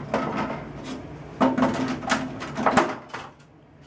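A plastic dispenser lid clicks and rattles.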